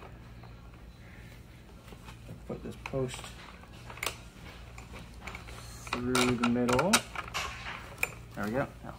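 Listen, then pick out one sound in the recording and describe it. Metal parts click and clink.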